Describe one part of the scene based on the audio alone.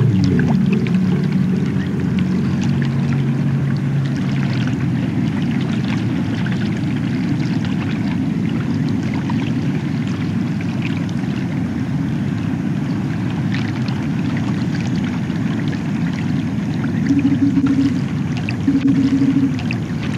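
A low, steady rumbling drone hums throughout.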